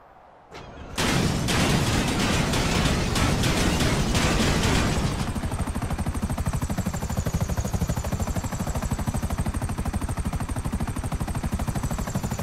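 A helicopter's engine starts and its rotor beats loudly and steadily.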